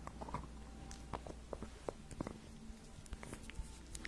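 Fingernails tap and click on a small jar close to a microphone.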